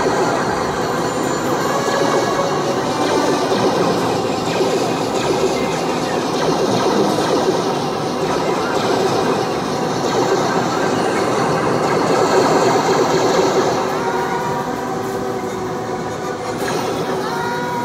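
A video game's gunfire and explosions play loudly from nearby speakers.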